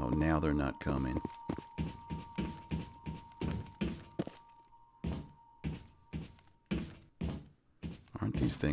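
Heavy footsteps clank on a metal floor.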